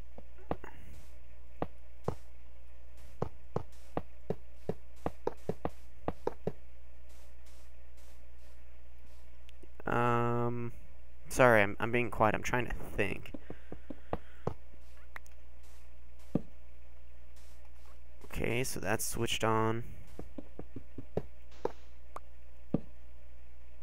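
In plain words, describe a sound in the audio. Soft clicks sound as blocks are placed.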